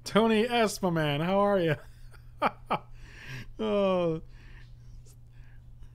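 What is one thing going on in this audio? A middle-aged man laughs.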